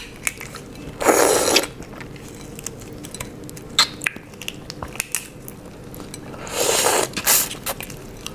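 A young woman bites and chews shrimp loudly, close to a microphone.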